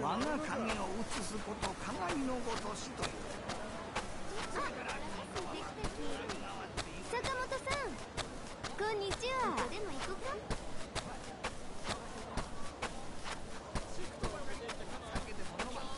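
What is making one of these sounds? Footsteps crunch on a dirt path at a steady walking pace.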